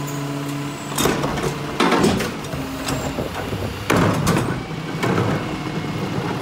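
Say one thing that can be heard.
A plastic bin bangs and rattles as it is emptied and set down.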